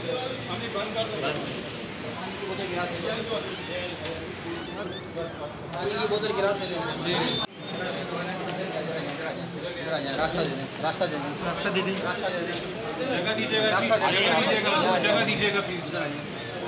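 A crowd of men talk over one another nearby, loud and jumbled.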